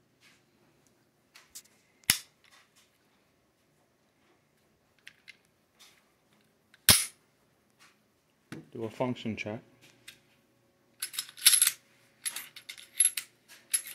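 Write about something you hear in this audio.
A pistol's metal parts click and snap as it is handled.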